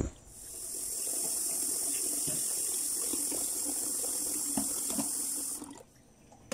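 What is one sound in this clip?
A spoon stirs and scrapes in a pot.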